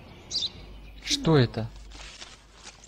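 An elderly man asks a short question.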